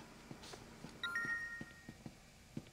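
A phone gives a short electronic message alert.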